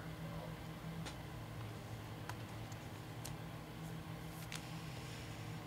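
Plastic card holders tap and click against a table.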